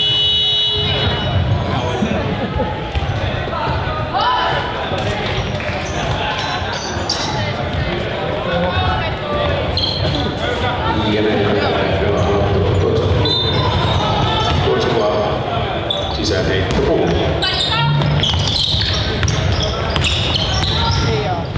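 Young girls shout and call out to each other.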